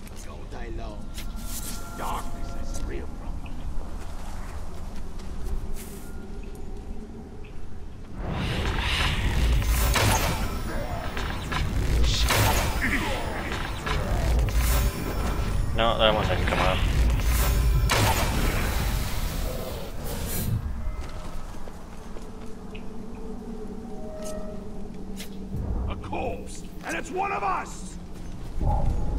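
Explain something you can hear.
Footsteps crunch over stone and grass.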